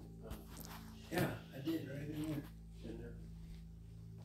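Footsteps walk on the floor.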